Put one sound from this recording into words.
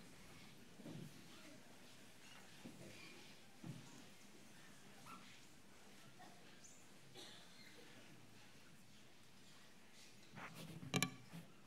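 An elderly man speaks softly and slowly through a microphone in an echoing room.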